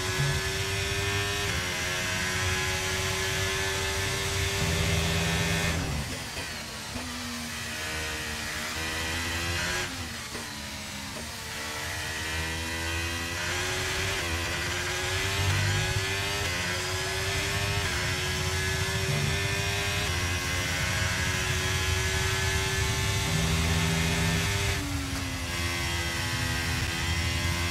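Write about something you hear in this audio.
A racing car engine screams at high revs, dropping in pitch when braking for corners and rising again as it speeds up through the gears.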